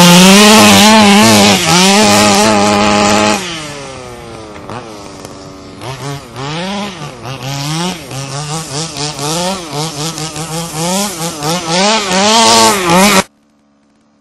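A small engine whines and revs up and down at high pitch.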